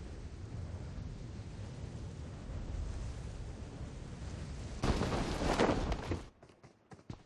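Wind rushes loudly during a parachute descent.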